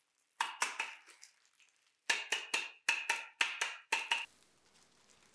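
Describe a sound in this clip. A flour sifter clicks and taps in quick bursts.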